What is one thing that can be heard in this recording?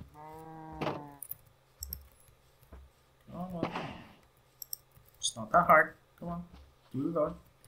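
Cows moo nearby, again and again.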